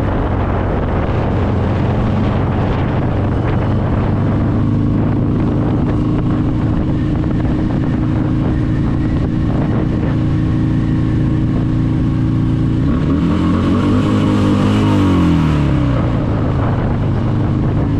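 A motorcycle engine hums steadily close by, then drops in pitch as the rider slows down.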